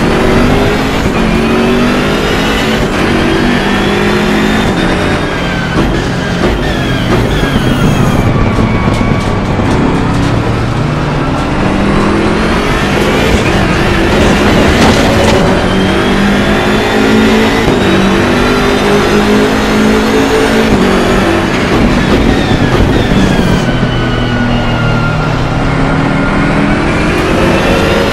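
A race car engine roars loudly, revving up and down through the gears.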